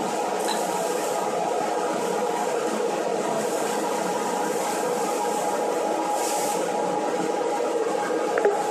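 Loose insulation rushes through a hose with a steady hiss.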